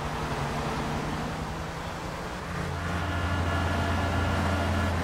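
A sports car engine roars steadily as the car drives.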